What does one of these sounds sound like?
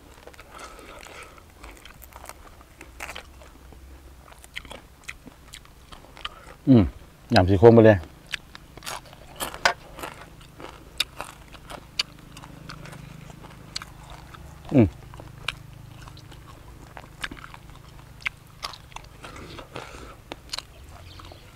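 A man tears apart crisp grilled rat meat with his hands.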